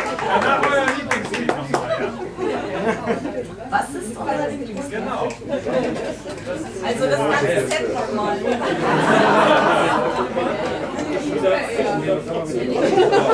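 A young woman sings into a microphone over a live band.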